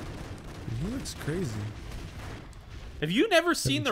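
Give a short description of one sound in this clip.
An explosion bursts with a roar of flames.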